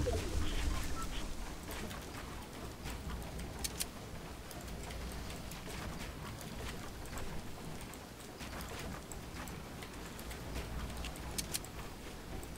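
Wooden building pieces snap into place with quick clacks.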